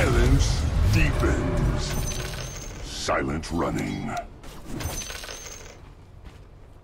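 Fantasy battle sound effects whoosh and crackle as spells are cast.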